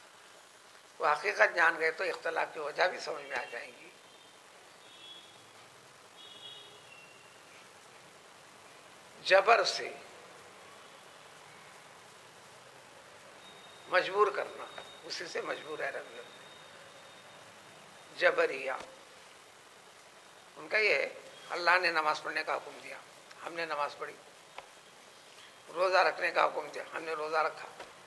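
An elderly man speaks calmly close to the microphone, in bursts with pauses.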